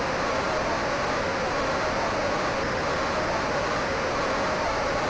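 A large crowd cheers and murmurs steadily in an arena.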